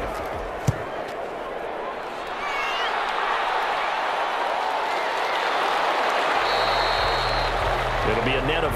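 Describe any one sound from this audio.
A large crowd cheers and roars in a stadium, swelling louder as the play goes on.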